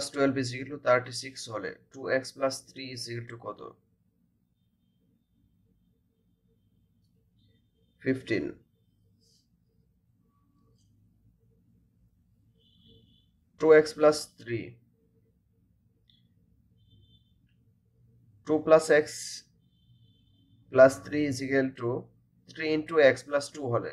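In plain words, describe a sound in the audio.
A man speaks calmly into a microphone in short bursts with pauses.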